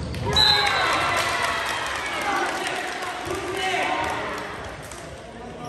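Players shout and cheer in a large echoing gym.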